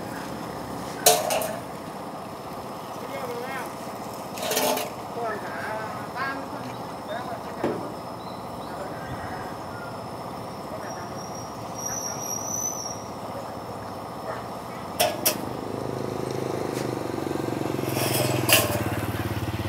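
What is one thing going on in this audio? A plastic water tank thumps and knocks as it is shifted on a truck bed.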